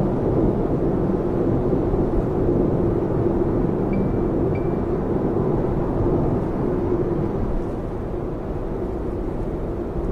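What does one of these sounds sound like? A car's engine hums steadily, heard from inside the car.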